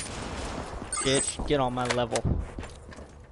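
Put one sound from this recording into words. A short electronic jingle chimes.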